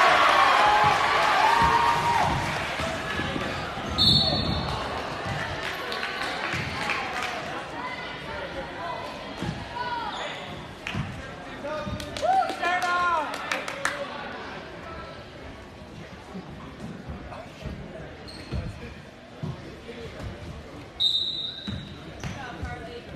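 A crowd in a large echoing gym cheers and chatters.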